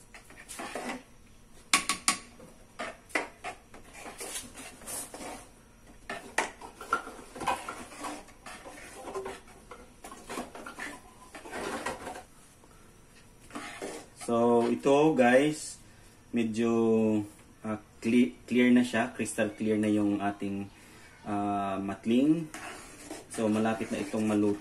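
A metal ladle scrapes and clinks against a metal pot.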